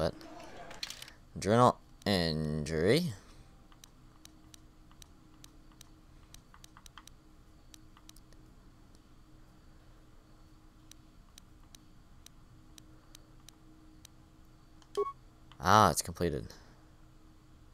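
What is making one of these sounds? Soft electronic clicks tick as menu items are scrolled through.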